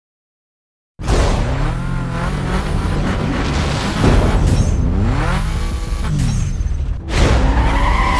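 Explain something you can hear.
Car engines idle and rev loudly.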